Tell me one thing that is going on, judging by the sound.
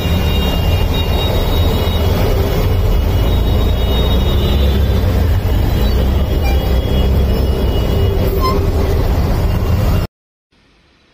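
Heavy rain pours down and drums on a car.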